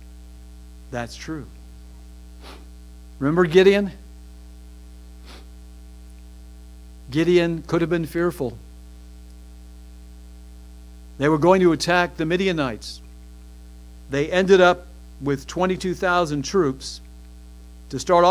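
A middle-aged man speaks slowly and with emphasis into a microphone, in short bursts with pauses.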